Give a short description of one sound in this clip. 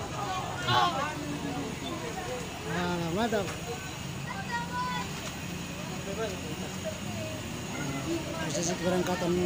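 Several men and women talk nearby with animation.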